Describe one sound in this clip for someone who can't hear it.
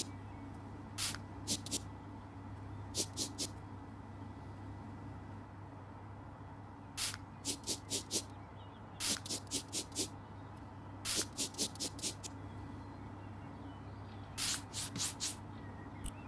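A spray bottle hisses in quick bursts.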